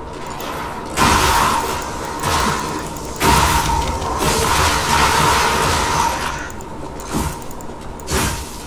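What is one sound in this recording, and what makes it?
Metal weapons clash and strike hard in a fight.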